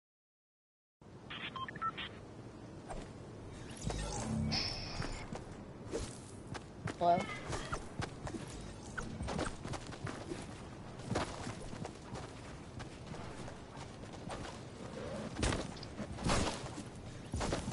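Video game footsteps and effects thump and clatter.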